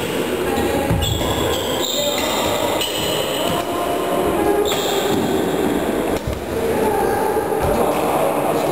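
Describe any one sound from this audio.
Badminton rackets strike a shuttlecock in a large echoing hall.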